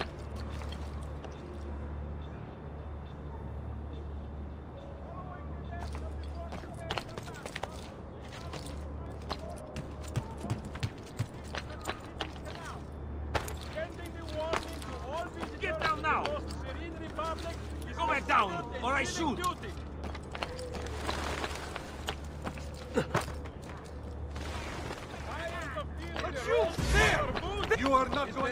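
Footsteps clatter quickly across roof tiles.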